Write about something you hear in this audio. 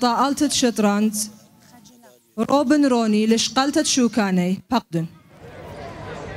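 A woman speaks into a microphone, announcing over a loudspeaker.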